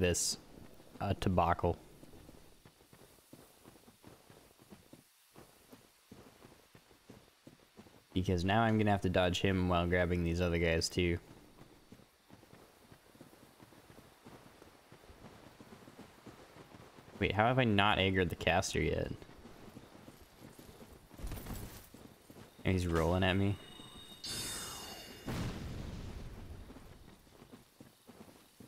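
Footsteps thud on soft ground at a steady running pace.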